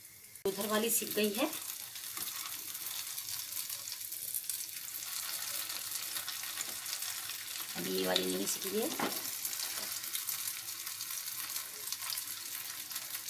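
Oil sizzles and crackles steadily in a pan.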